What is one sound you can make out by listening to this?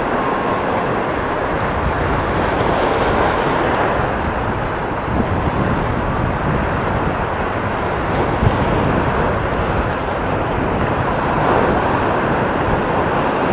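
Waves break and wash onto the shore close by.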